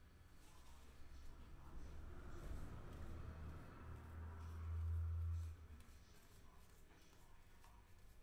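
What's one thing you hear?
Trading cards rustle as they are flipped through by hand.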